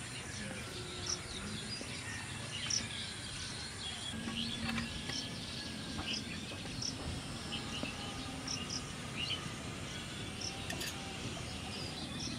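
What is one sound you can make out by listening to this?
A metal spoon scrapes rice against a metal pan.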